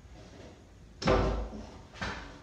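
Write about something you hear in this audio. A wooden board thumps down.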